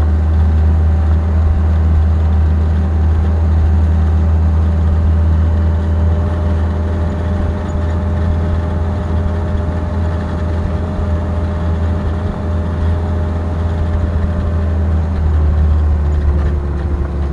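Wheels roll along rails with a steady clatter.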